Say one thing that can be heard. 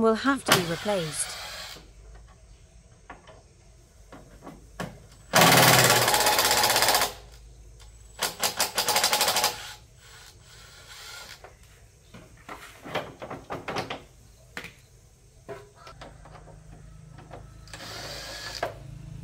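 Metal tools clink and rattle against a motorbike's parts.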